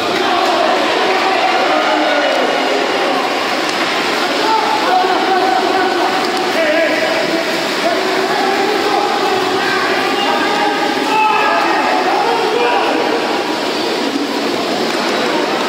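Swimmers splash and thrash through water in a large echoing pool.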